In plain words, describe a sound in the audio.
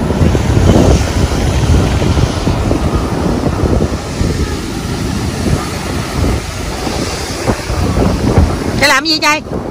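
Surf breaks and washes on a beach.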